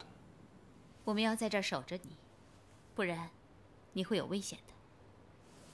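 A second young woman speaks gently, close by.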